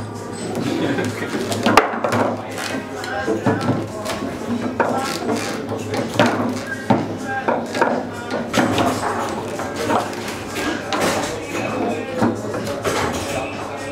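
Foosball rods spin and clatter as a ball is struck and knocks against the sides of a table.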